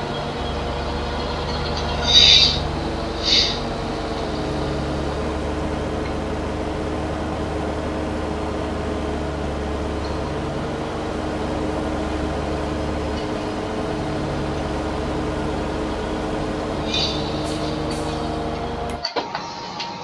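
A mower clatters as it cuts grass.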